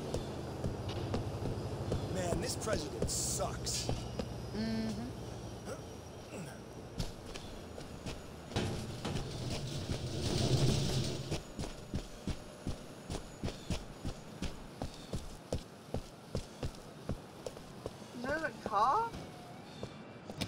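A young man talks with animation into a microphone.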